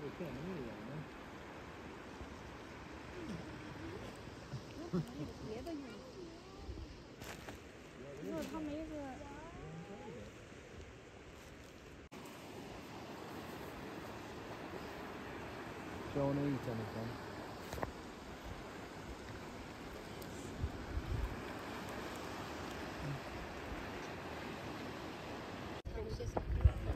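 Small waves wash gently over rocks.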